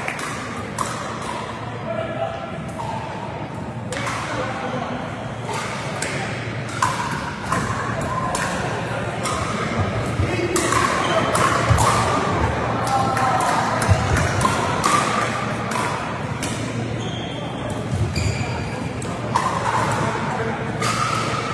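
Paddles strike plastic balls with sharp pops in a large echoing hall.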